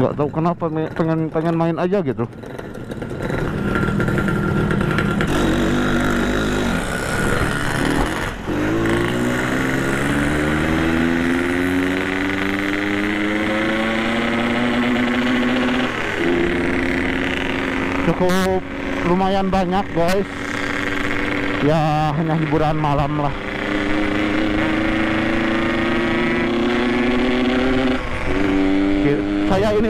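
A motorcycle engine hums steadily and rises in pitch as it speeds up.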